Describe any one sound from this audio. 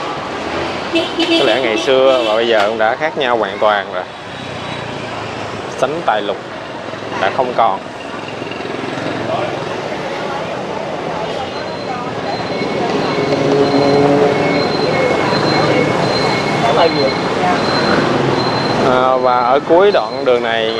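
Motorbike engines hum and pass by on a busy street.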